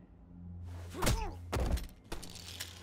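A heavy blow thuds.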